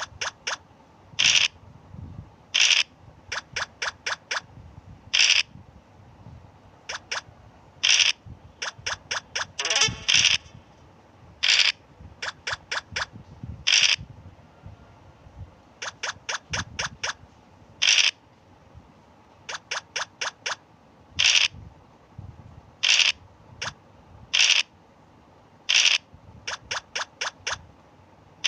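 Game pieces tick in quick steps as they hop along.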